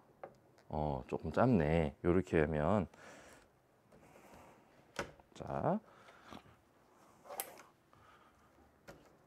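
Metal parts of a light stand click and clank as they are adjusted.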